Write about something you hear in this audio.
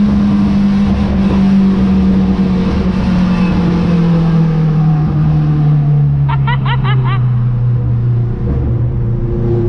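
A car engine hums steadily, its pitch slowly dropping.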